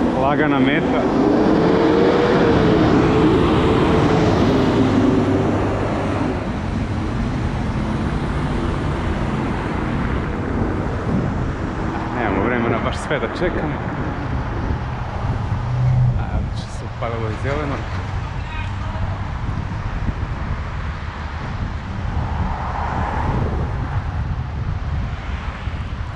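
Wind rushes steadily past the microphone outdoors.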